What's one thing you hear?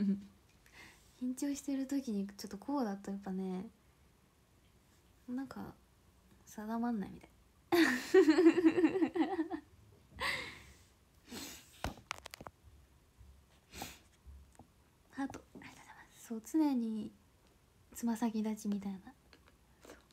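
A young woman talks softly and playfully close to the microphone.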